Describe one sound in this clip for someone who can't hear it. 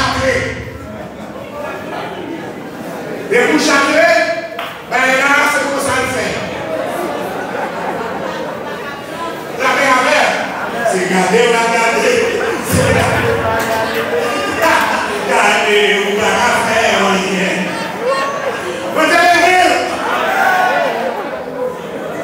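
A man preaches with animation through a microphone and loudspeakers in an echoing hall.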